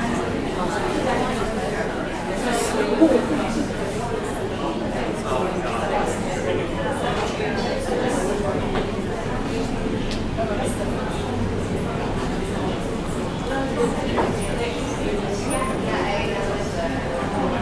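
A young man speaks calmly into a microphone, heard through a loudspeaker in a room.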